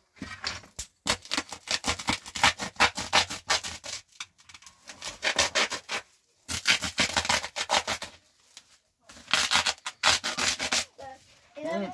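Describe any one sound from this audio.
Powder rustles and scrapes as it is scooped from a sack into a metal bowl.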